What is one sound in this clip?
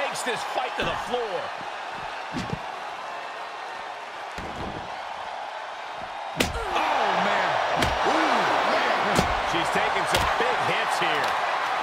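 A wooden stick strikes a body with sharp smacks.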